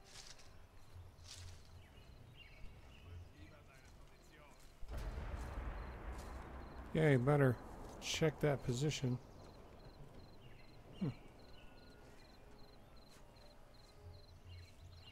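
Footsteps rustle softly through leaves and undergrowth.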